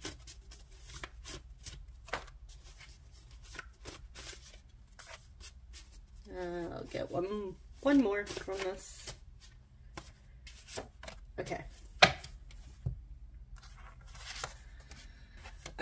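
Paper cards rustle and slide as a hand shuffles them.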